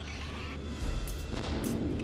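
A generator sparks and crackles.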